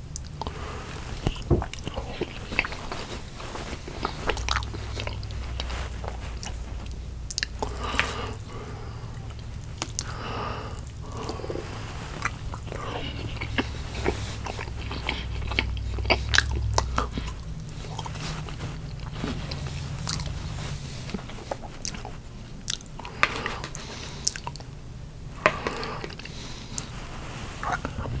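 A middle-aged man chews food noisily close to a clip-on microphone.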